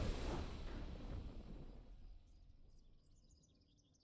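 A booming victory fanfare from a game swells and then slowly fades away.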